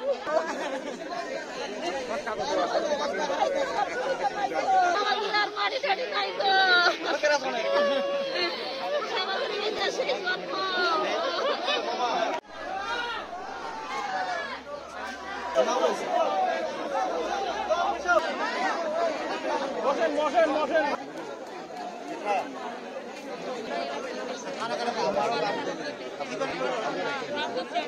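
A large crowd of men and women chants and shouts outdoors.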